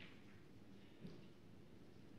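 A cue strikes a snooker ball with a soft tap.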